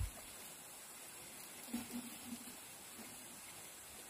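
Sticks of firewood knock together as they are arranged.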